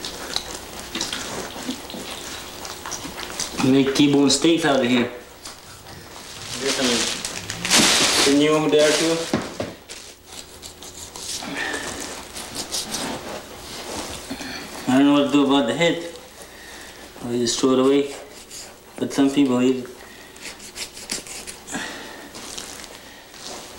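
Wet flesh squelches and tears under hands.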